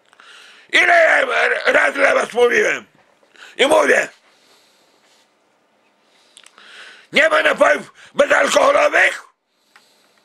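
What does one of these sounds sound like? A middle-aged man shouts loudly and hoarsely, close by, in short bursts.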